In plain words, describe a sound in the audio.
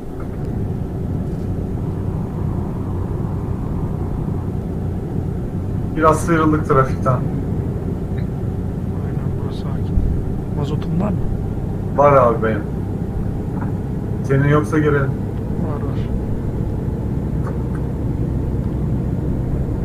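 A truck engine hums steadily at speed.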